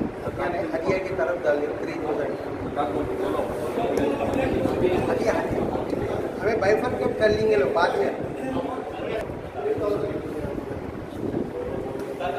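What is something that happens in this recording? A middle-aged man speaks forcefully and with animation, close by, in a room with some echo.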